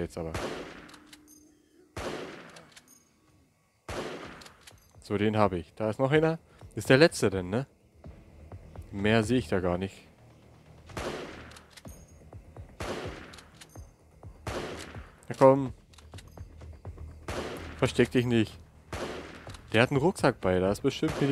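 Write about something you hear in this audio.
A gun fires single shots, each trailing off in a short echo.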